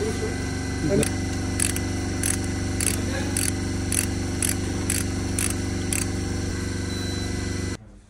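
A ratchet wrench clicks as it tightens a bolt on an engine block.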